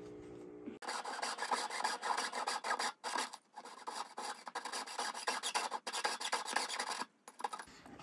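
A jeweler's saw cuts through thin silver.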